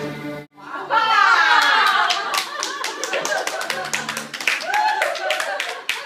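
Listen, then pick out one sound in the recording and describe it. Several women sing together.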